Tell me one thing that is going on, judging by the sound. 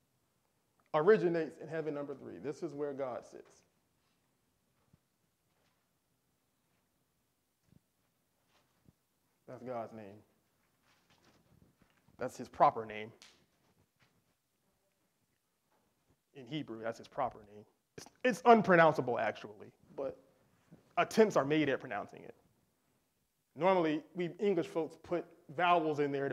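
A man speaks calmly and clearly, like a teacher explaining, with pauses between phrases.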